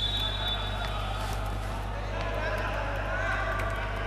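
A volleyball bounces on a hard court floor in an echoing hall.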